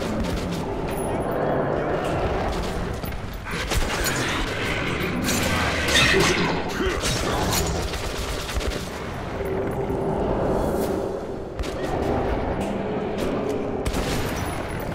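Shotgun blasts boom repeatedly.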